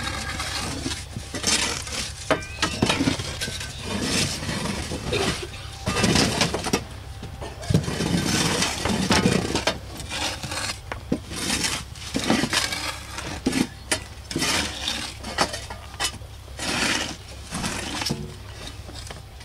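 Shovels scrape and dig into soil.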